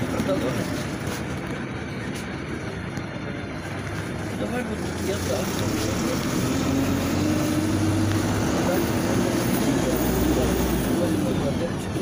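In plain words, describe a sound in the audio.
A bus engine hums steadily and rises in pitch as the bus speeds up.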